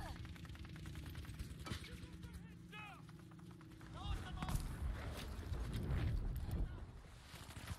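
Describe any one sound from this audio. A heavy explosion booms nearby.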